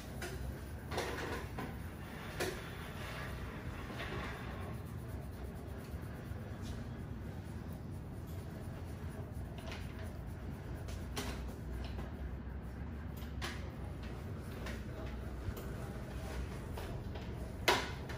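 Hands tap and pat on a scalp.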